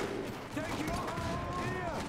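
Gunshots crack in a short burst.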